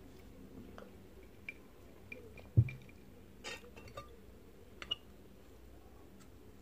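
A person chews food wetly, close up.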